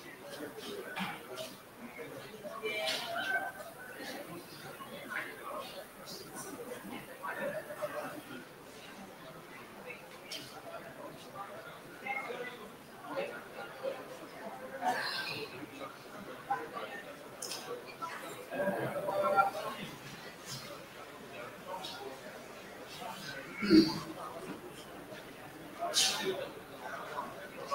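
A crowd of men and women murmur and chatter at a distance in a large room.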